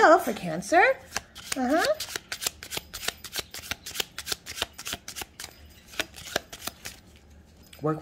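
Playing cards riffle and flutter quickly as a deck is shuffled.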